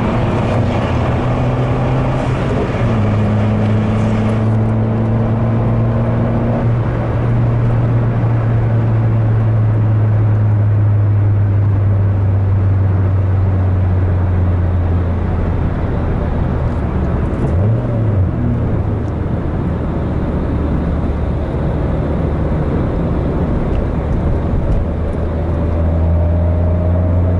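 A car engine hums steadily, its pitch shifting as gears change.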